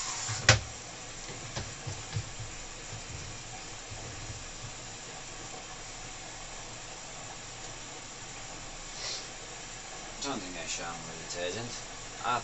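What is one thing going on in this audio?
A washing machine drum turns with a low steady hum.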